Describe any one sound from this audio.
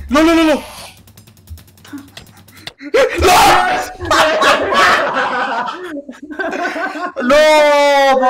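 A young man shouts with dismay, close to a microphone.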